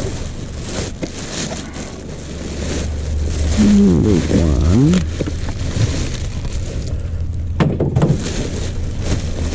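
Plastic bin bags rustle and crinkle close by.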